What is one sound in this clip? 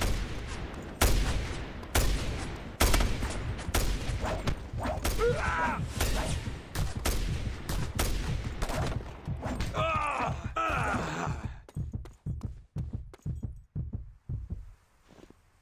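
Gunshots crack in rapid bursts, close by.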